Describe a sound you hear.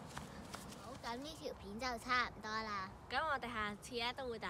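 A young girl speaks clearly and close by.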